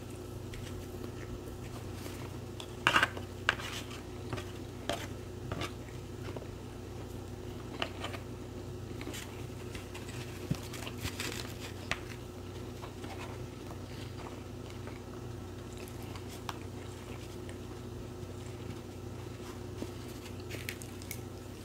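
A woman chews food close up with wet mouth sounds.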